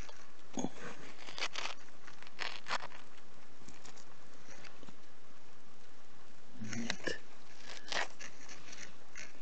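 A gloved hand scrapes and digs through loose, dry soil.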